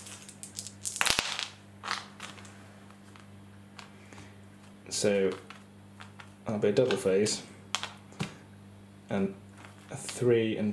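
Small dice click and rattle as they are dropped onto a hard surface.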